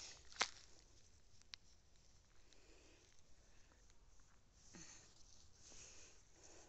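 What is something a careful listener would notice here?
A cat's paws softly rustle through grass outdoors.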